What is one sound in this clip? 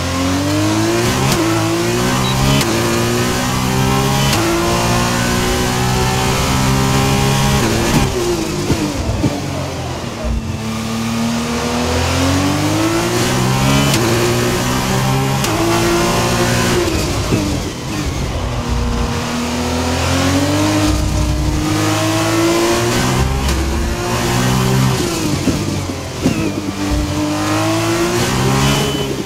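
A racing car engine screams, rising through the gears and dropping sharply under braking.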